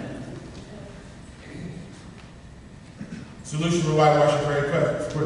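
A man speaks calmly through a microphone in an echoing room.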